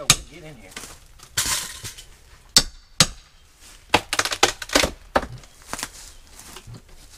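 A tool knocks and scrapes against wood in short bursts.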